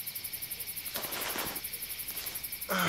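Cloth rustles as hands handle a wounded leg.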